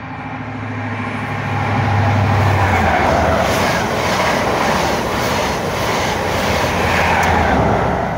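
A train rushes past close by with loud rattling of wheels on rails.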